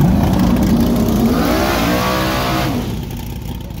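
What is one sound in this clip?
A car engine revs up sharply, its pitch rising, then cuts off.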